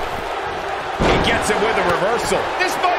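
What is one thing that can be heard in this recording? A heavy body thuds onto a wrestling mat.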